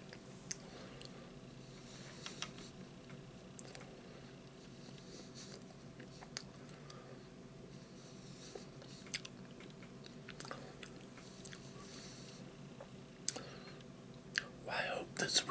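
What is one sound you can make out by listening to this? A man crunches on a crisp snack close by.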